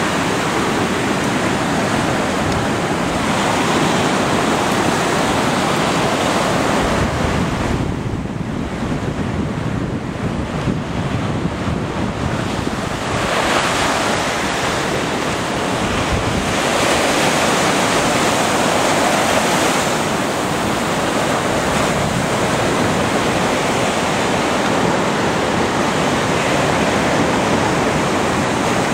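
Waves break and wash up onto a beach, rising and falling.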